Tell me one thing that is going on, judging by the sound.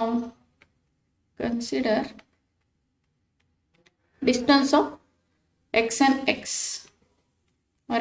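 A woman speaks calmly into a microphone, in short phrases with pauses.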